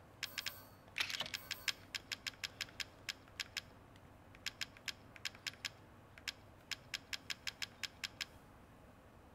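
Menu selections click in quick, even ticks.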